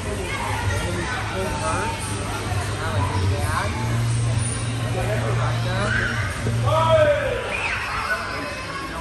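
Men and young people talk and call out nearby in a large, echoing room.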